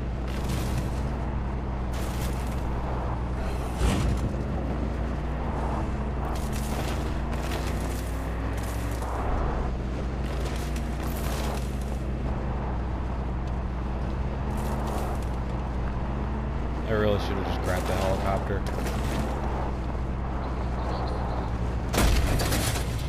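Tyres crunch over a rough dirt road.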